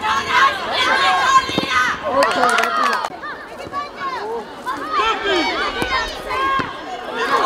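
Young players shout and call out to each other across an open outdoor field.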